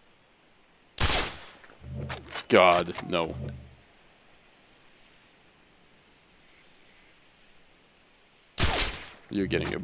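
A sniper rifle fires sharp, loud single shots.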